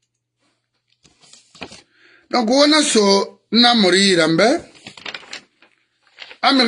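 A middle-aged man speaks in a tearful, wailing voice close to a microphone.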